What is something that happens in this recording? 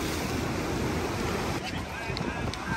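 Waves wash and surge onto the shore.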